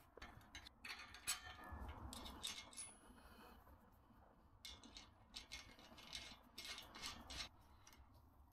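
Metal clinks as bolts and brackets are handled.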